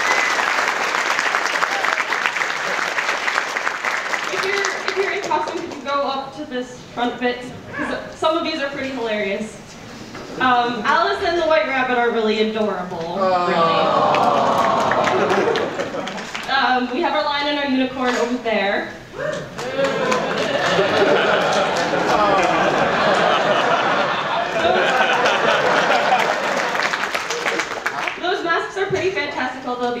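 A large crowd chatters and cheers in an echoing hall.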